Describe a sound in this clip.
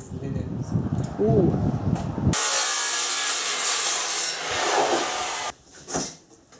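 A power tool whirs loudly as it cuts.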